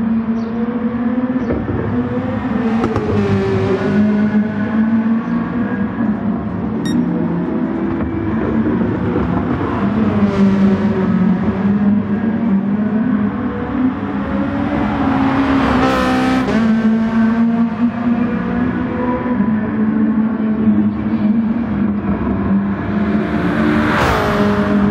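A racing car engine roars steadily, shifting pitch as it speeds up and slows down.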